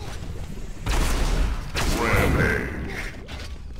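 A laser gun fires with a sharp zap.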